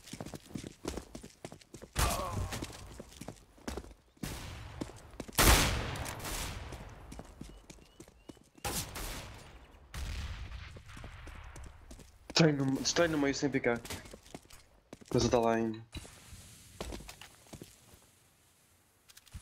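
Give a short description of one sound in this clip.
A rifle fires a loud, sharp shot.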